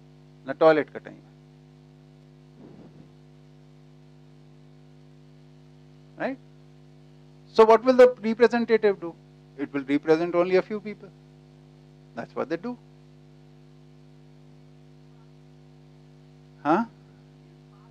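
A middle-aged man speaks through a headset microphone in bursts, with long pauses.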